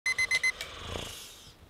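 A phone alarm beeps rapidly.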